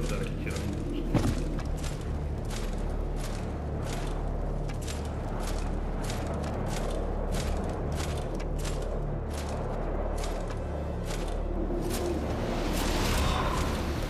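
Heavy armoured footsteps clank on a stone floor in a large echoing hall.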